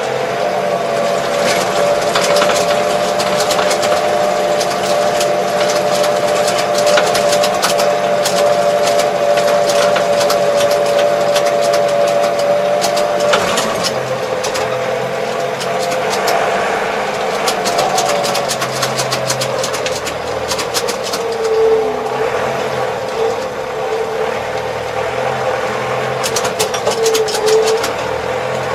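A tractor cab rattles and clatters over a bumpy track.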